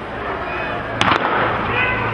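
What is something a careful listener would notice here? A starting pistol fires with a sharp bang.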